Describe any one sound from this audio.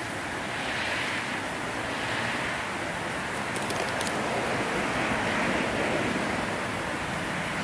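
Plastic wrapping crinkles in someone's hands.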